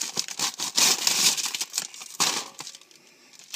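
Popped popcorn pours out of a rustling paper bag into a glass bowl.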